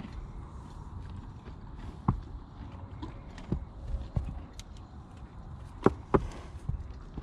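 A horse's muzzle knocks against a plastic water bowl.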